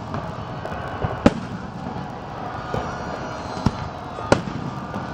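Fireworks burst with loud booms outdoors.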